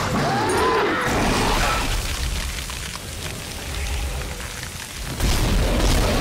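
A plasma gun fires in sharp bursts.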